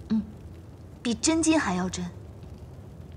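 A young woman answers softly and earnestly, close by.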